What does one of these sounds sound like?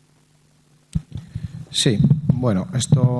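A man speaks through a microphone.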